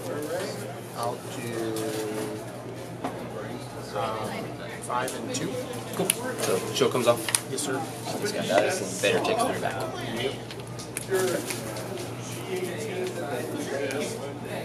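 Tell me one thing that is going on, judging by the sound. Playing cards slide and tap softly on a table mat.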